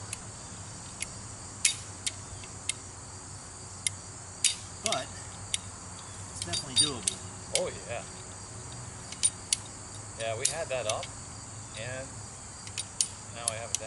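A ratchet strap clicks sharply as it is tightened.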